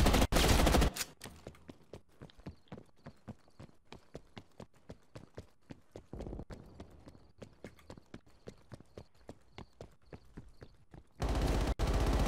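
Footsteps tap quickly and steadily.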